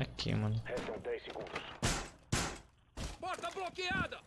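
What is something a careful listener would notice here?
A wooden barricade is smashed and splinters.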